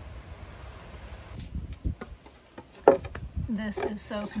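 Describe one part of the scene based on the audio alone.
A wooden board scrapes and knocks on concrete.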